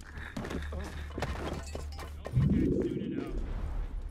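Footsteps run quickly across stone.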